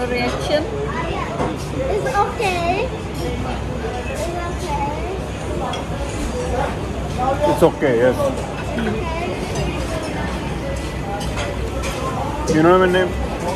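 A crowd murmurs in the background.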